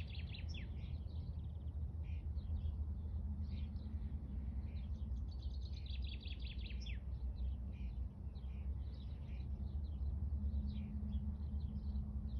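Wind blows steadily outdoors, rumbling low.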